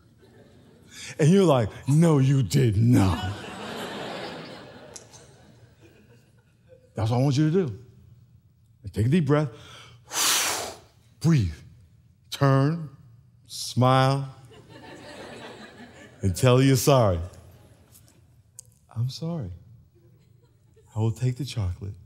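A man speaks expressively into a microphone, with long pauses.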